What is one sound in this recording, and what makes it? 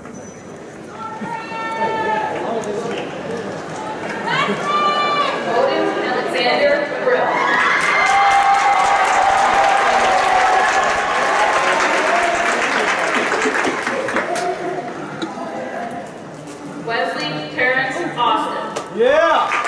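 People in a crowd whoop and cheer.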